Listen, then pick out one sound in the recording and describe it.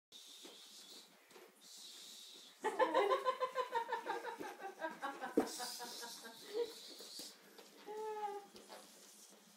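A small dog's claws skitter on a wooden floor.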